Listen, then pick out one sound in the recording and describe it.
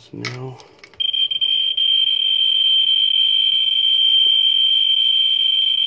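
A radiation counter gives out a steady, loud high buzz.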